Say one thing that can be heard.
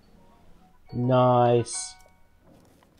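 A bright rising chime plays.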